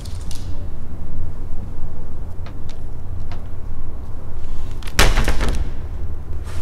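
A sheet of paper rustles and crinkles as it is unfolded.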